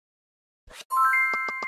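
A bright game jingle plays.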